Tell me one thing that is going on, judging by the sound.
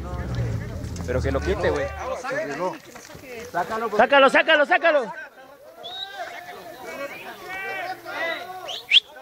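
Men shout and talk excitedly nearby outdoors.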